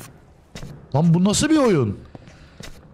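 A man speaks into a close microphone with an exaggerated, sliding voice.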